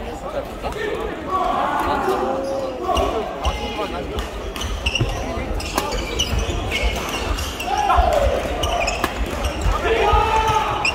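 Rackets smack shuttlecocks in a large echoing hall.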